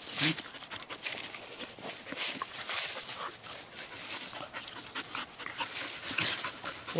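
Dogs growl and snarl while wrestling.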